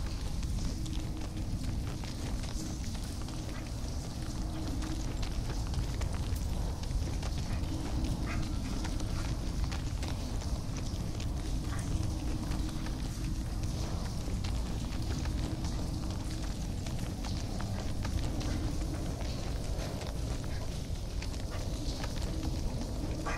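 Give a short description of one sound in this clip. Heavy footsteps thud steadily on soft ground.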